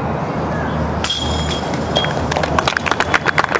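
A disc clatters into metal chains.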